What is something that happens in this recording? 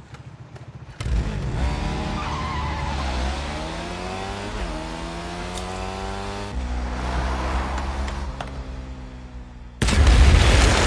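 A motorcycle engine revs loudly and rises in pitch as it speeds off.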